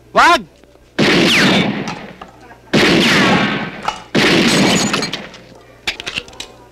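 A pistol fires several loud shots that ring out and fade.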